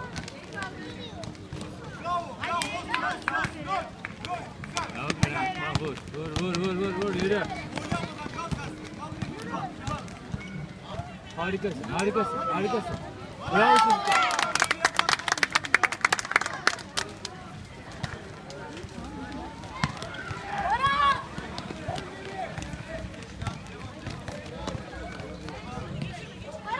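Children shout and call out across an outdoor court.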